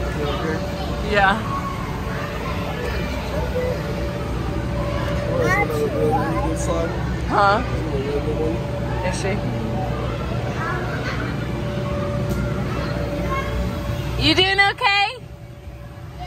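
Young children shout and squeal nearby in a large echoing hall.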